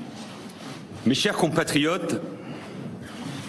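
A man speaks firmly into a microphone before a crowd.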